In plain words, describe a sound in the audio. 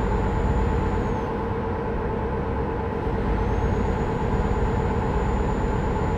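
Tyres roll on the road surface with steady road noise.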